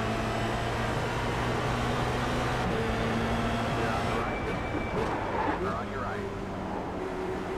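A racing car engine drones loudly at high revs.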